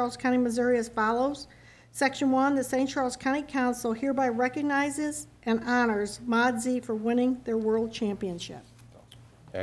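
A man reads out through a microphone.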